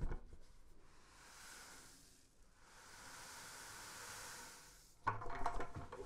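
Grain pours from a bucket with a steady hiss.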